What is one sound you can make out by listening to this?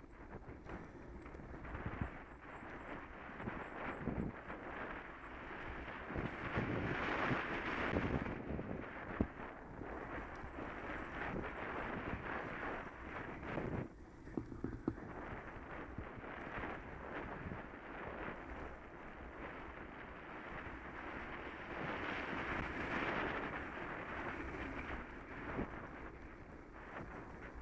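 Bicycle tyres roll and rattle over a rough, gravelly path.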